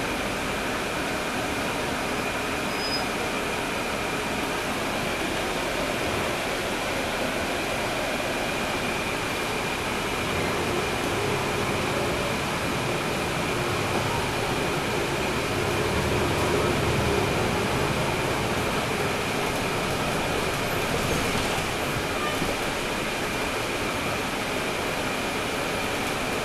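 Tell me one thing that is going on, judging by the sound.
A bus engine hums steadily from inside the moving bus.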